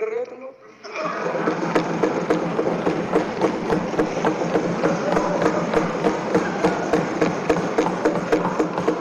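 A crowd claps and thumps desks.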